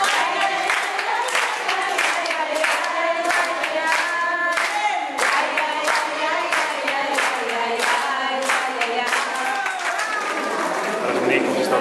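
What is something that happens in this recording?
Women and a man sing together loudly.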